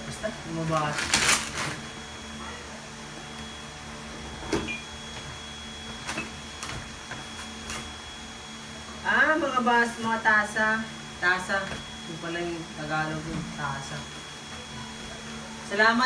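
Paper rustles and crinkles as a package is unwrapped.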